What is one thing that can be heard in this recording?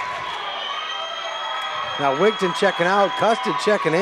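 A volleyball bounces on a wooden floor.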